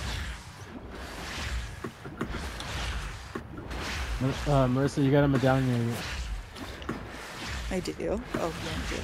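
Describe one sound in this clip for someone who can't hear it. Water splashes and sloshes as someone wades and swims.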